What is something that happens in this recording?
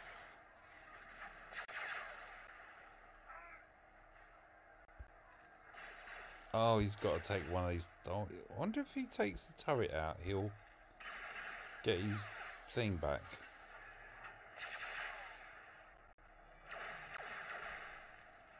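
Blasters fire and zap in a game battle.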